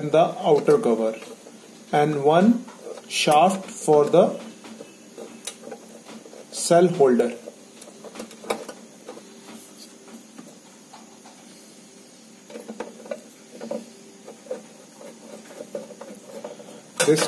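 Plastic parts and cables rustle and click softly as they are handled.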